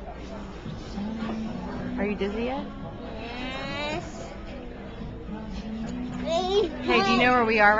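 A young girl talks and sings close by.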